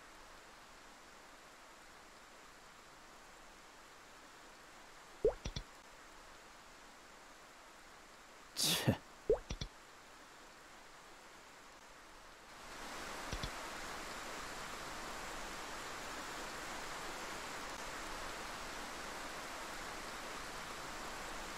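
Rain falls steadily, growing louder partway through.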